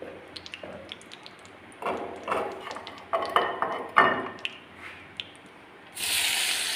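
Hot oil sizzles and pops in a pan.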